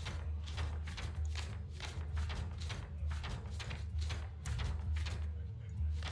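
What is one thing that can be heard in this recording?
Game pages flip with a short papery swish.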